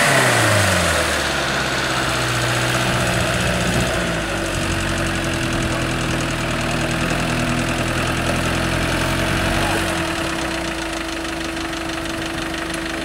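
An off-road buggy engine idles.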